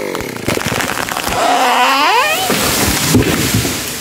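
A tree crashes down through leaves.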